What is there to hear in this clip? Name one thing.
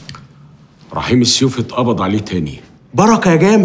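An elderly man speaks with animation close by.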